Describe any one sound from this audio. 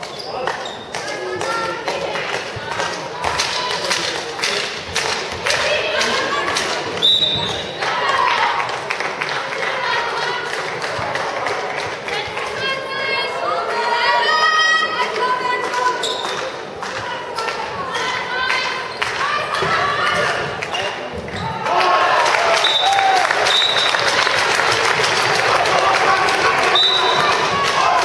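A ball bounces on the floor.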